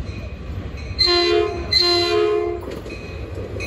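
A train horn blares twice as a train approaches.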